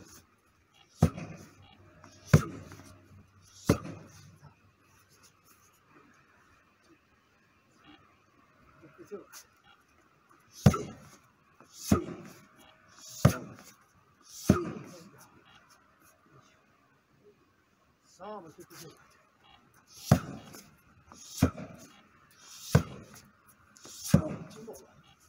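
Punches and kicks thud hard against a padded shield, one at a time.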